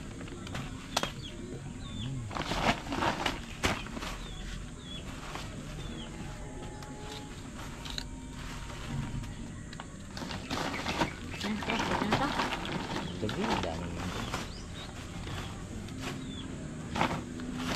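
A machete chops into a coconut husk with sharp knocks.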